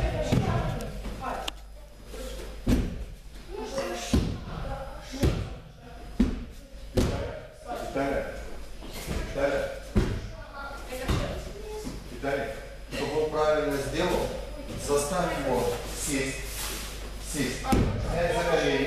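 Bodies thud onto a padded mat in a large echoing hall.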